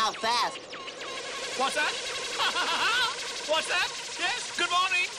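A small robot chirps and bleeps electronically.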